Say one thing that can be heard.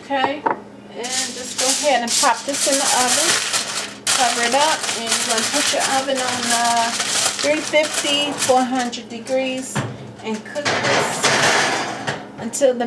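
Aluminium foil crinkles loudly as it is pressed down.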